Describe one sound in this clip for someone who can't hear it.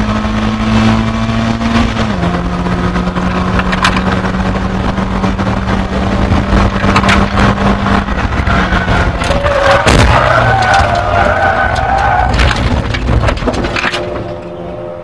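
A race car engine roars loudly from inside the cabin.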